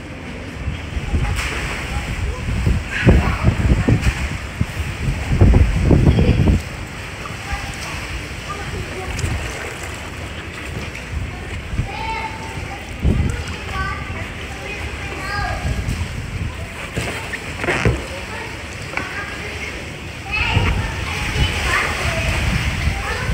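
Water splashes as a young girl swims close by.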